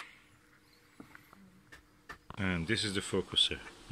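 A plastic ring scrapes and clicks as it is pulled off a fitting.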